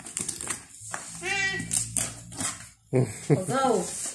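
Wrapping paper crinkles and tears.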